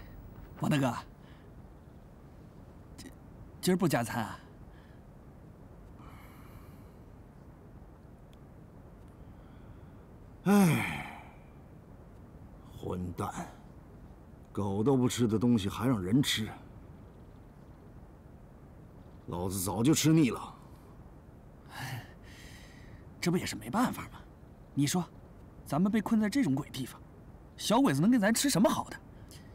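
A young man speaks cheerfully and chuckles nearby.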